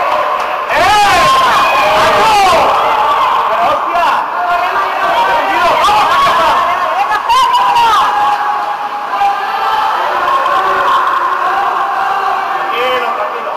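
Water splashes as swimmers thrash about.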